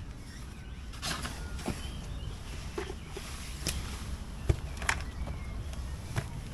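Objects are handled, making soft knocks and rustles.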